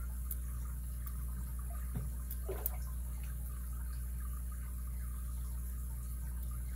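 Small metal picks click and scrape inside a padlock.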